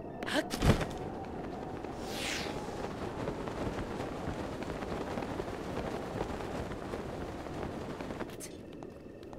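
Wind rushes loudly past a glider in flight.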